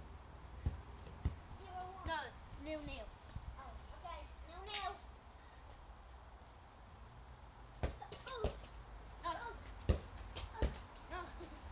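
A young girl bounces on a trampoline with dull thuds.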